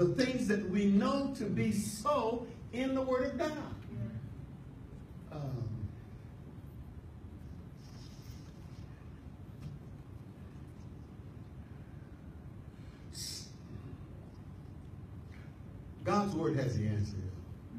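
A man preaches with animation into a microphone, his voice filling a large room.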